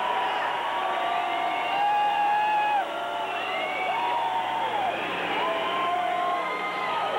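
Loud live music with long, gliding synthesizer tones plays from a stage in a large hall.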